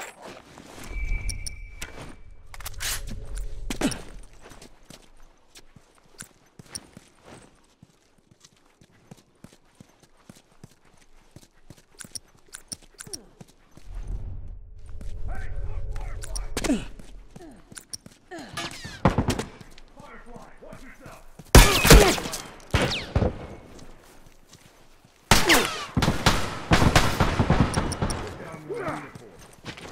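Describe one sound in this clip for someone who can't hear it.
Footsteps run quickly over hard ground and grass.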